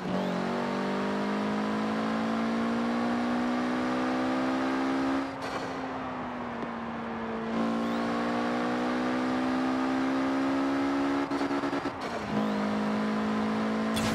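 A car engine hums steadily at high revs, dropping briefly as gears change.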